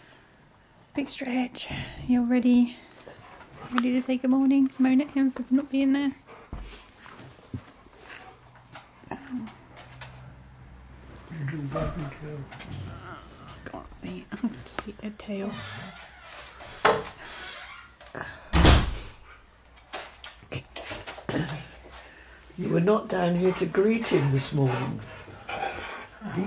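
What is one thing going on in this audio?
A husky howls and talks in long, wavering yowls, close by.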